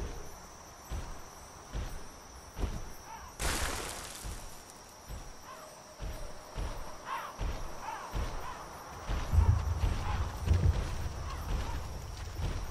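Heavy armoured footsteps thud and clank on stone at a steady pace.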